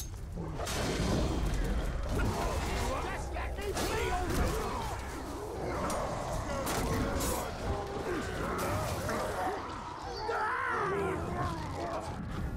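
Fire roars from a flamethrower.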